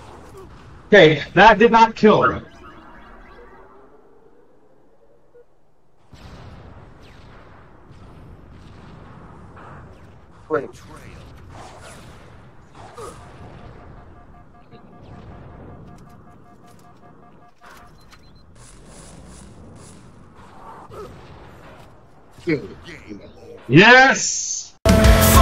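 Gunfire and explosions sound from a video game.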